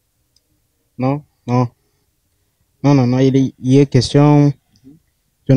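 A young man speaks into a microphone close by, calmly.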